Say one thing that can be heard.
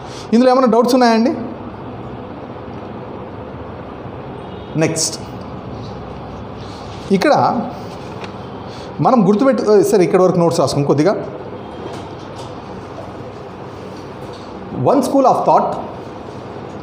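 A man speaks calmly in short bursts nearby, in a room with some echo.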